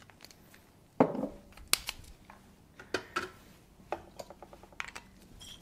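Glass bottles clink and knock against each other.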